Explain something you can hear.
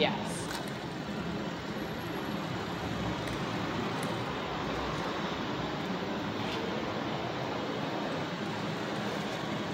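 A small toy motor whirs as a little robot vehicle rolls over pavement.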